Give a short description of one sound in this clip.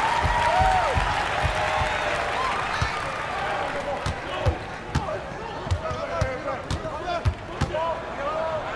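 A basketball bounces with steady thuds.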